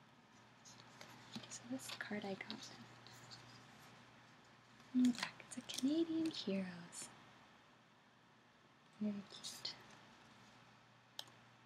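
A paper card rustles in hands.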